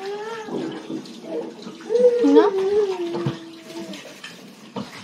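A small child hums and babbles in a high voice close by.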